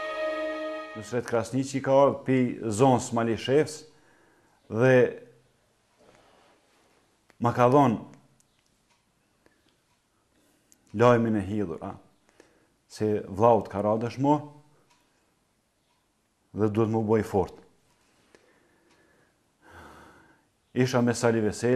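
A middle-aged man speaks slowly and with pauses, close by.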